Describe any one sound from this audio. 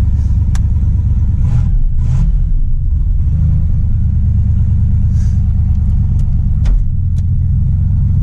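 A gear lever clicks into place.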